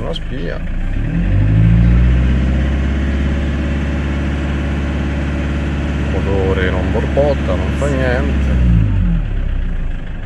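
An engine revs up, holds a higher hum, then drops back down.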